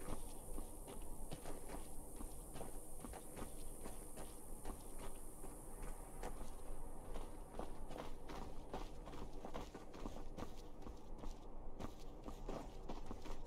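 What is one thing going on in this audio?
Footsteps tread quickly on stone and gravel.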